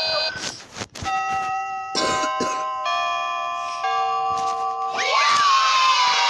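Electronic chimes ring out in a bright, sustained melody.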